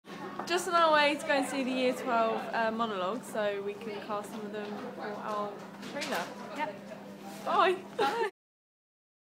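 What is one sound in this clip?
A second young woman talks and laughs close by.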